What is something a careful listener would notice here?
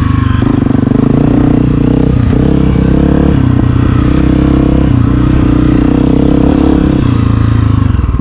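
A dirt bike engine roars loudly up close, its pitch rising and falling as the rider works the throttle.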